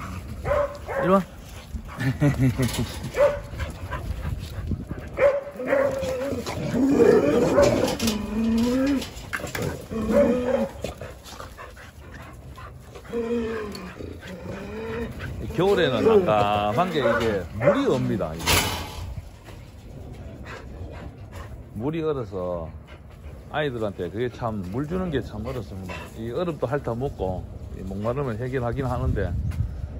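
Dogs' paws pad and scuff across bare dirt.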